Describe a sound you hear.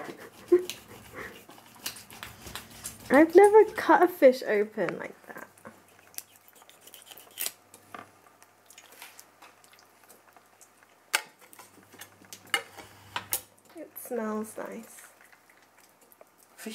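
A knife scrapes and taps against a fish on a cutting board.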